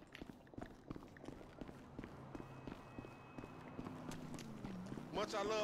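Footsteps run on hard ground.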